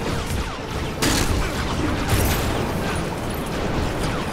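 Small explosions burst and rumble.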